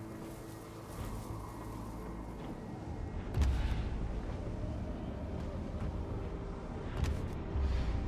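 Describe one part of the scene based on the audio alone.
Wind rushes steadily past in flight.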